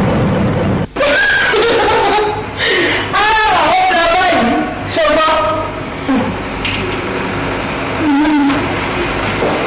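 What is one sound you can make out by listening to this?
A middle-aged woman sings loudly close by.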